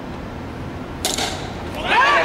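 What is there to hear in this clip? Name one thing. An aluminum bat cracks against a baseball.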